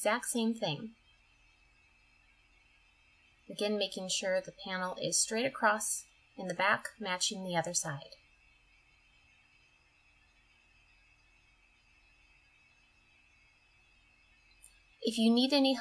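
A young woman speaks calmly, close to the microphone.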